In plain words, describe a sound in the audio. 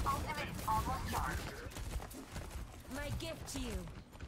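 Thrown blades whoosh and strike in quick bursts.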